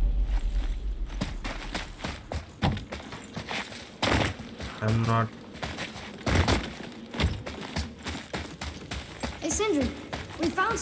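Heavy footsteps crunch on rocky ground.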